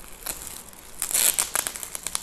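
Foil wrapping paper crinkles and rustles.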